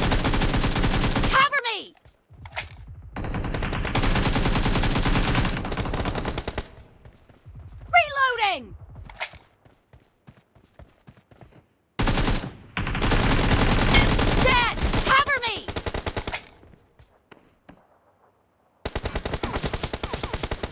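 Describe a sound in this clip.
A rifle fires rapid bursts of gunfire.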